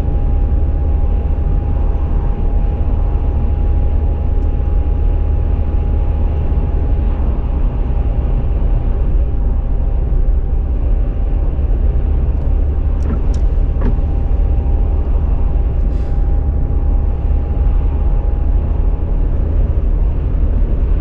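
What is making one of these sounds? Tyres roar steadily on the road surface.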